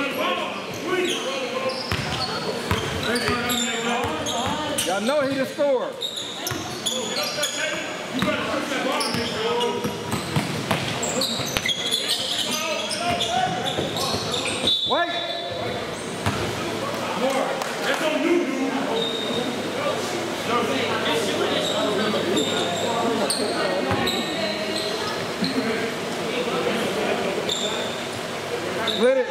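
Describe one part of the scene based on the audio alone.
Young men call out to one another across the court.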